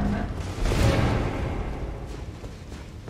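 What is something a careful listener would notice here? Water splashes as a character wades through it.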